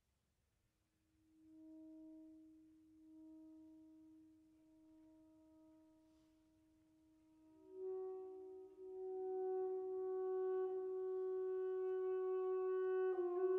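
Wind instruments play sustained notes together in a large echoing hall.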